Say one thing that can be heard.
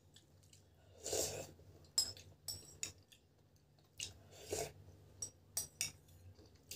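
A woman sips broth from a bowl.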